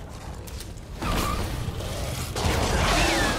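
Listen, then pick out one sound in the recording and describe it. A creature lets out a loud, harsh shriek.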